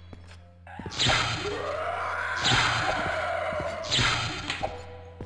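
Electricity crackles and hisses from a magic spell.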